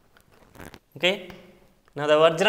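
A man speaks clearly, lecturing, close to a microphone.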